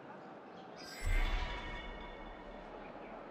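A rush of air whooshes past during a high leap.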